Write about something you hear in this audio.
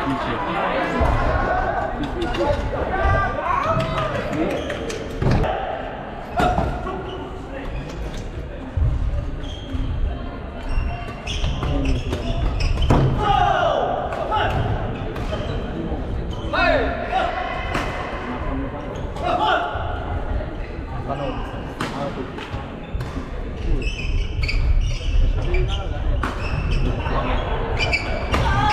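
Young men and women call out and chat in a large echoing hall.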